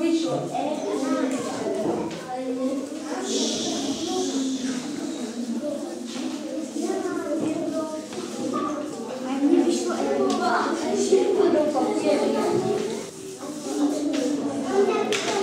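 Children chatter and talk all around in a room.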